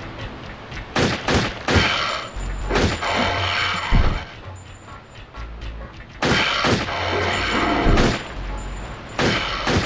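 A pistol fires sharp shots again and again.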